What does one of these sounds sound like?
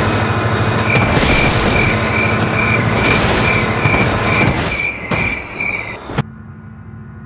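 Metal crashes and crunches as a train wrecks.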